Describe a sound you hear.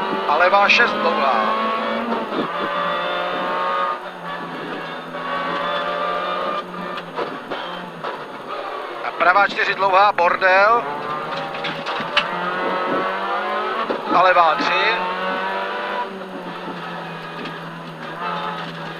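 A rally car engine roars loudly and revs hard through gear changes.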